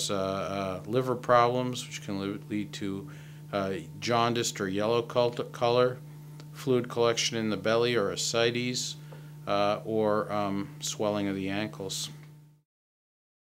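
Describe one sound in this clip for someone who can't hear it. A middle-aged man speaks calmly and close to a microphone.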